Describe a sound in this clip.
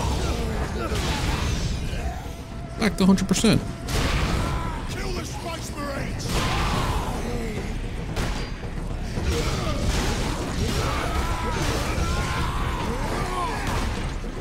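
Weapons clash and hit with heavy thuds.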